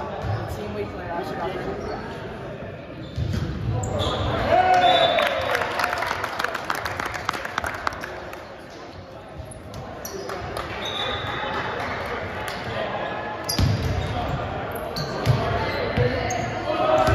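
Young people's voices chatter and echo through a large, echoing hall.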